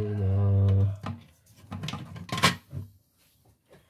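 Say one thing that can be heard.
Plastic parts click and rattle close by as they are handled.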